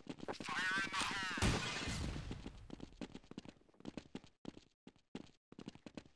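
A stun grenade goes off with a loud bang and a ringing.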